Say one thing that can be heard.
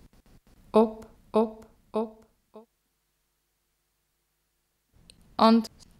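A man calls out in short, loud, drawn-out bursts.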